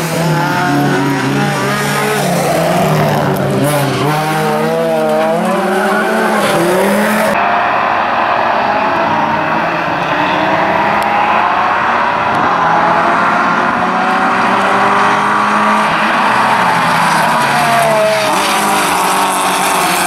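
Several race car engines roar and rev loudly, rising and falling in pitch.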